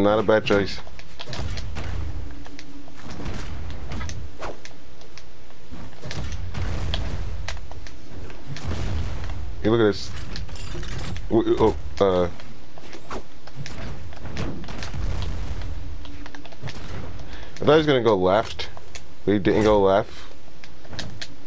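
Cartoonish punches and kicks thud and smack.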